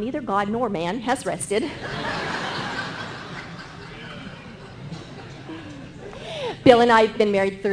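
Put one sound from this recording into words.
A middle-aged woman speaks with animation through a microphone.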